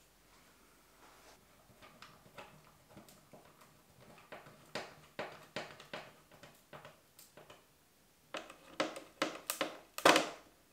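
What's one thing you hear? A screwdriver scrapes and clicks as it turns a small screw into a hinge.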